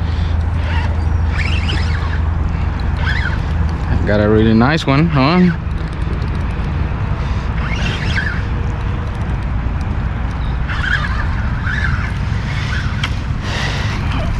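A fishing reel clicks and whirs as line is wound in.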